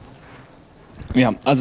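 A young man speaks through a microphone.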